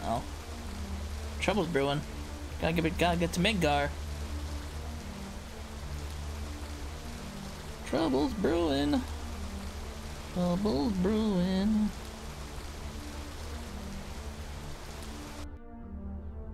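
Water rushes down in a steady roar.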